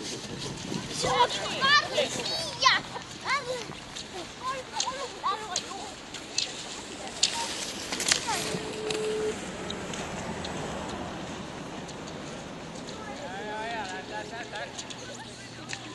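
A man shouts encouragement outdoors.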